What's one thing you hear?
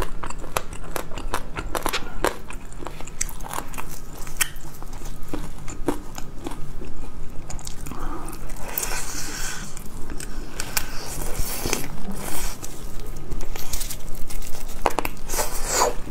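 A young woman bites into crunchy fried meat close to the microphone.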